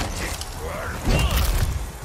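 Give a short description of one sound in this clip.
A blade slashes through the air.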